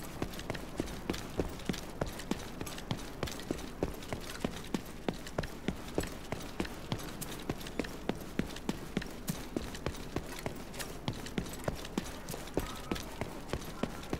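Quick footsteps run steadily on hard ground.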